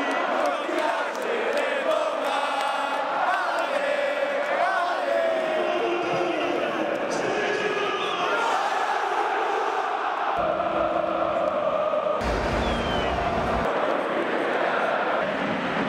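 A large crowd sings and chants in a stadium.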